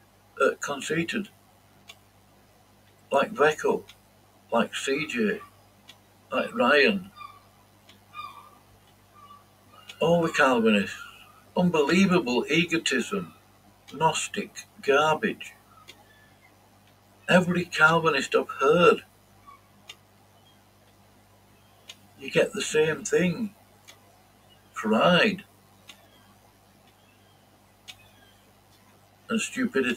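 A middle-aged man speaks calmly in short bursts with pauses, heard through speakers.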